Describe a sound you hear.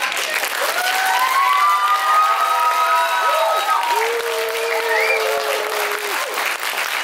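Children cheer and shout excitedly.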